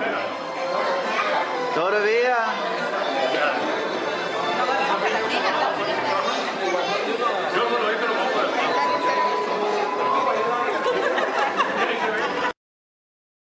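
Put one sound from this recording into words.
A crowd of men, women and children chatter and talk all around in a busy room.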